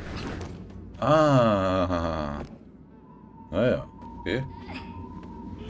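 A man speaks briefly into a close microphone with animation.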